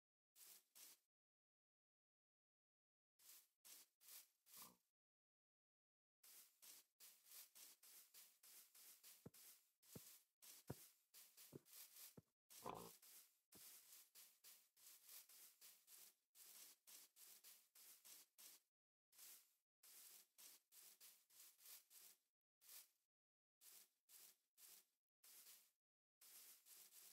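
Footsteps rustle rhythmically through grass.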